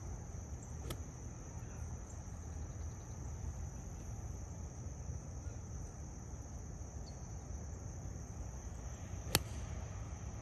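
A golf driver strikes a ball off a tee with a sharp crack.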